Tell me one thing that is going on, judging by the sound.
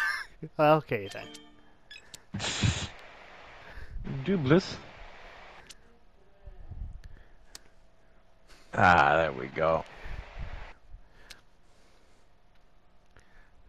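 A card lands on a pile with a short game chime.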